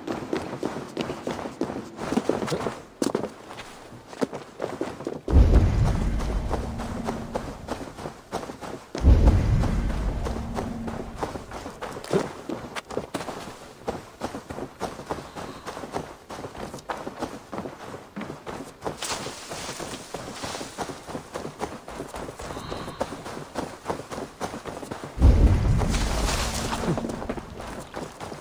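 Footsteps run quickly over grass and brush.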